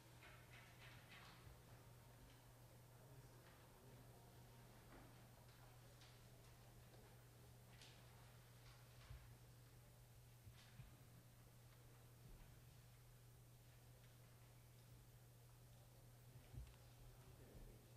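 Men and women murmur quietly at a distance in a large room.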